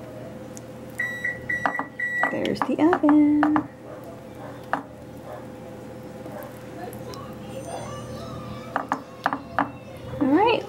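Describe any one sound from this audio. A metal spoon scrapes and taps as it spreads a thick paste.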